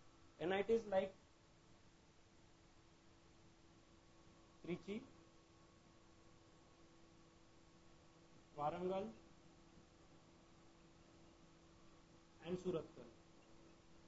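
A man speaks briefly in short phrases.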